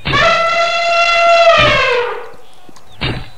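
An elephant trumpets loudly, its call sliding down at the end.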